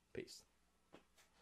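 A young man says a few quick words close to a microphone.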